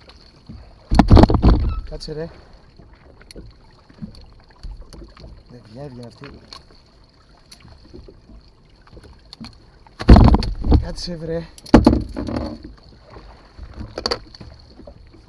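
Heavy thumps and knocks sound on a boat's deck and hull.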